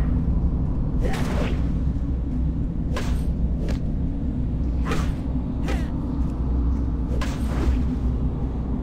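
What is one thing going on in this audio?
Weapons strike with sharp hits in a fight.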